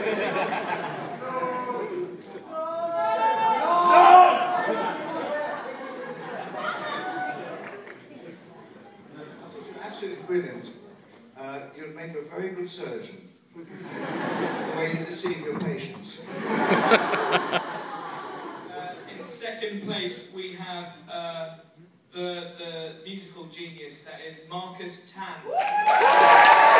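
Men speak out loud in a large echoing hall.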